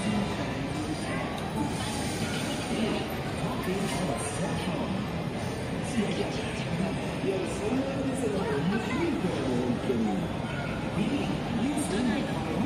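A crowd of pedestrians chatters nearby outdoors.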